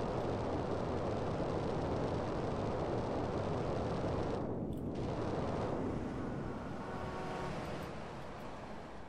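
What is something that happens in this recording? A jetpack roars steadily.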